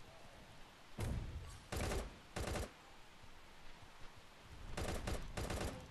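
An automatic rifle fires in short, loud bursts.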